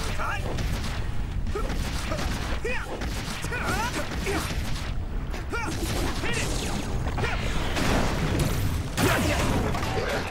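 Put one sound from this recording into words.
Swords slash and clang in a fight.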